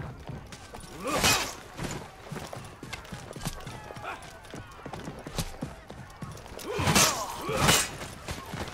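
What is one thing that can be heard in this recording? Men shout battle cries.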